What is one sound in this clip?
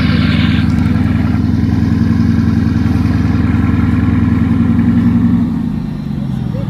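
A sports car engine idles with a deep, loud rumble, then settles lower.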